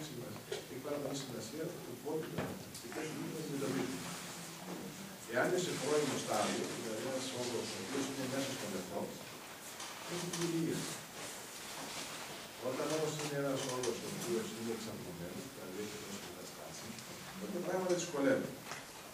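A man speaks calmly and clearly to an audience in a room with a slight echo.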